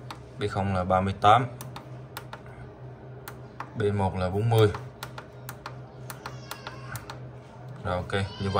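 Small plastic buttons click under a finger, again and again.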